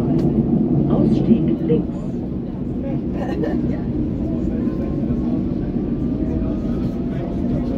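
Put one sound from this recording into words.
Another train passes close by.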